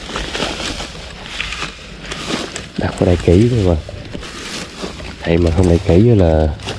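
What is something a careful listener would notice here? A hand rustles through dry grass.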